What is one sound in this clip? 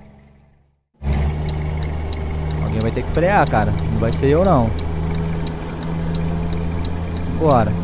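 A truck engine hums from inside the cab.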